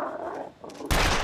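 A pistol fires.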